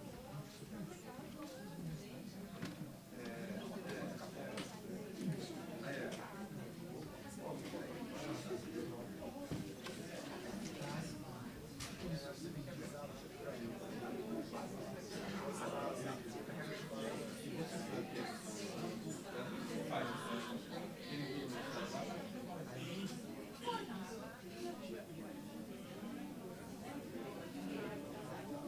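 A man speaks calmly through a microphone over loudspeakers in a large room.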